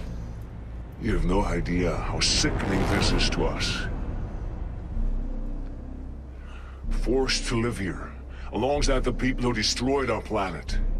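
A man speaks coldly and with contempt, his voice muffled by a mask.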